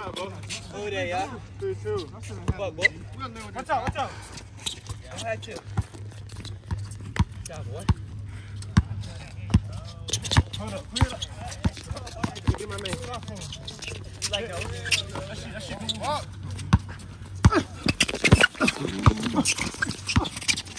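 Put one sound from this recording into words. A basketball bounces repeatedly on outdoor asphalt.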